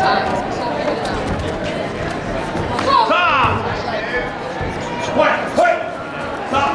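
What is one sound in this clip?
Many voices chatter throughout a large echoing hall.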